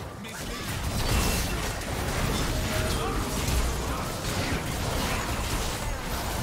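Video game fight effects of blade strikes and spells crackle and boom.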